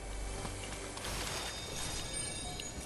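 A treasure chest opens with a bright shimmering chime.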